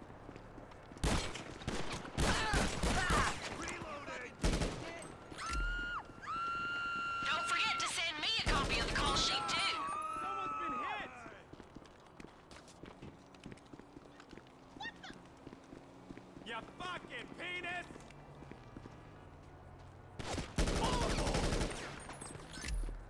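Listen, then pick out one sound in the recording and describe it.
Gunshots fire in quick bursts, echoing off walls.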